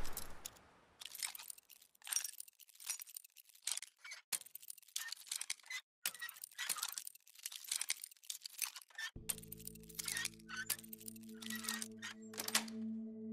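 Metal scrapes and clicks as a lock is picked.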